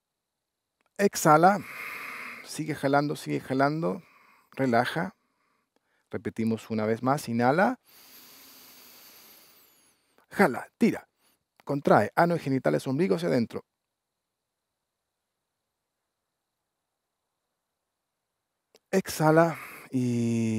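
A man speaks calmly, giving instructions.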